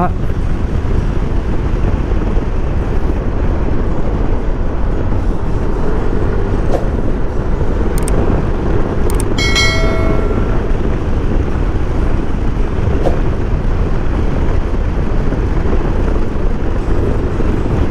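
Strong wind rushes loudly past.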